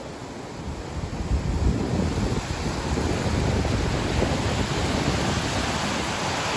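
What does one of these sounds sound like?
Larger waves break and roar nearby.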